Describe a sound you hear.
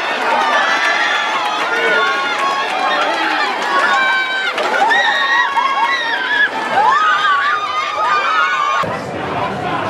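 A group of young women cheer and shout, celebrating outdoors.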